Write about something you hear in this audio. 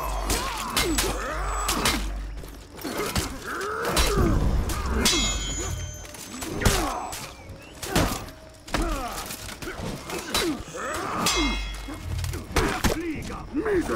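Heavy blows thud against armour.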